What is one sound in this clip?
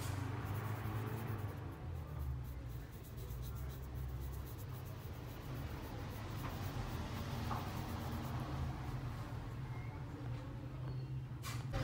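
A felt marker scratches softly on a ceramic figurine.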